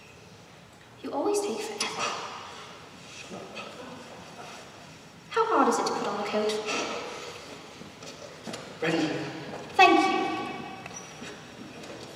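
A young man speaks loudly in a large echoing hall.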